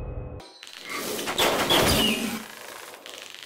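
A heavy blade swooshes and strikes with a loud rush.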